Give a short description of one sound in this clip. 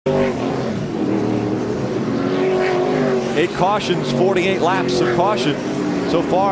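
Race car engines roar and whine as cars speed past.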